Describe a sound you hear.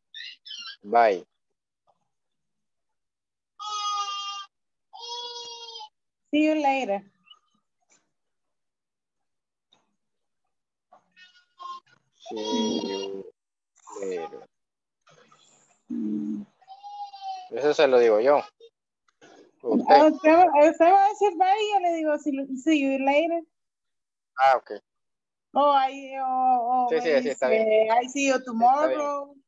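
A woman speaks through a headset microphone over an online call, in short teaching phrases.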